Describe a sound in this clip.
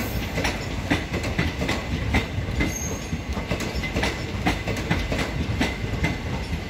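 A passenger train rumbles past at a steady pace.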